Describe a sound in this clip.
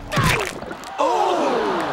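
A large crowd gasps and groans in dismay.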